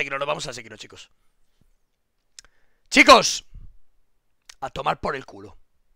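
A man talks with animation through a microphone, in short bursts.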